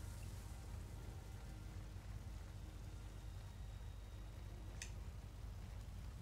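A fire crackles nearby.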